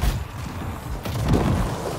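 An explosion booms with a rushing blast.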